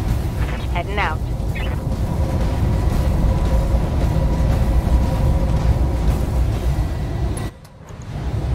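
A giant walking machine rumbles low and steadily.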